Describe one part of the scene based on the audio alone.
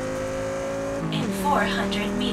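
A car engine drops in pitch for a moment as the car shifts gear.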